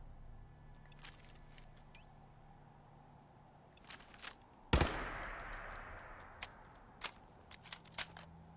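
Metal parts of a gun click and clack as the gun is handled.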